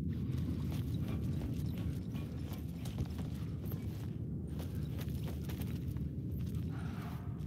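Footsteps walk over a hard floor.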